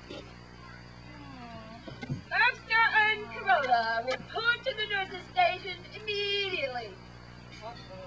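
A woman talks with animation nearby, outdoors.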